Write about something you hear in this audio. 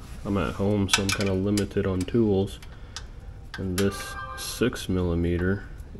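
A metal tool clicks against a bolt.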